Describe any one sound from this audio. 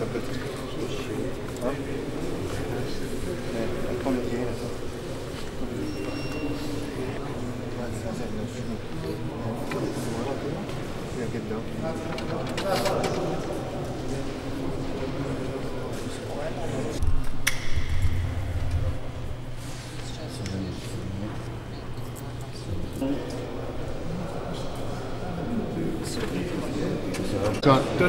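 Several men talk nearby in a busy, echoing room.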